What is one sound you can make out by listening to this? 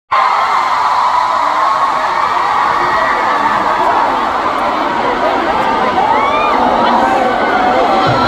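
A large crowd cheers and screams loudly in a big echoing hall.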